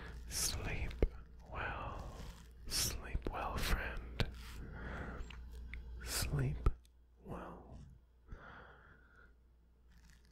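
A young man whispers softly and closely into a microphone.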